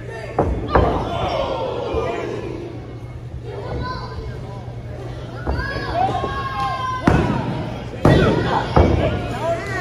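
Bodies thud onto a wrestling mat.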